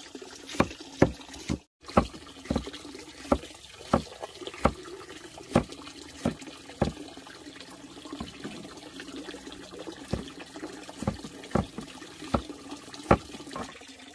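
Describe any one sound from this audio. A knife chops repeatedly on a wooden board.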